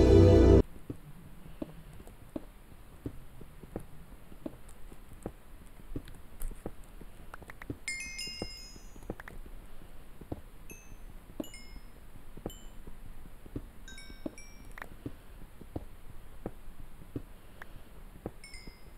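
A pickaxe knocks and chips at stone blocks in quick, steady strikes.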